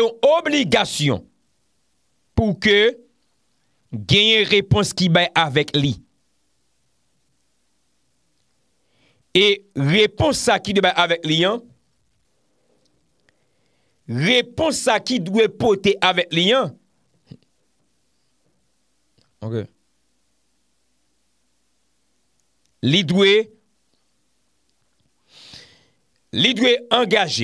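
A man speaks calmly into a close microphone, with pauses between phrases.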